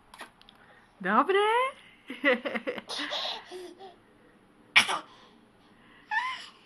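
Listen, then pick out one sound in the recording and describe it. A baby squeals and laughs loudly up close.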